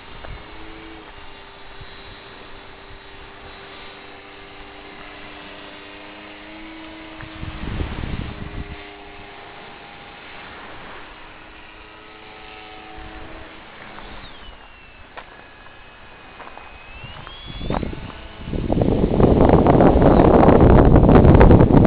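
A model airplane engine buzzes overhead, its pitch rising and falling as it passes.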